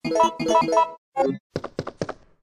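Menu chimes beep quickly.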